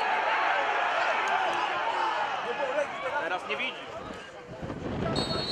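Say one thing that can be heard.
A large crowd cheers and chants loudly in a stadium.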